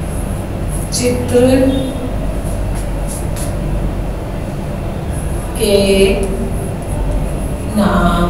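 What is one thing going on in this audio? A woman speaks calmly in short phrases.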